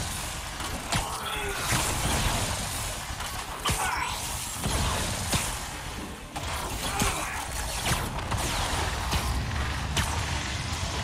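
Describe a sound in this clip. Web lines shoot out with sharp, quick thwips, again and again.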